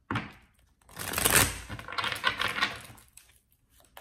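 A deck of playing cards is riffled with a quick flutter.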